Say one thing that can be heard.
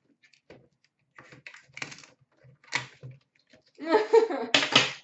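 Cardboard packs rustle and knock as they are handled.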